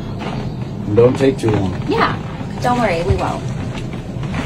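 A young woman speaks quietly up close.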